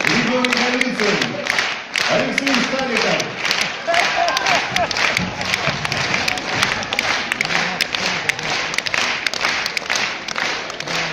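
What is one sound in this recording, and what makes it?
An audience claps and applauds throughout.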